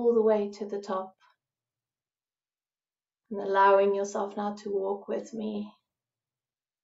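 A middle-aged woman speaks calmly and softly into a microphone, with pauses.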